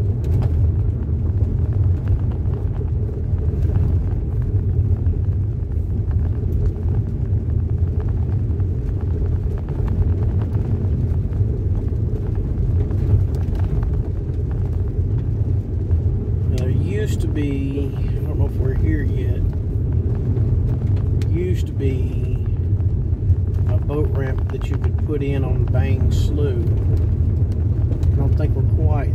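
A car engine rumbles steadily inside the car.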